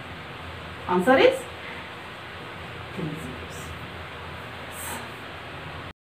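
A woman speaks calmly into a close microphone, in short phrases.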